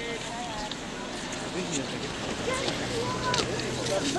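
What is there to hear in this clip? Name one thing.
Skis swish and scrape over snow as a skier passes close by.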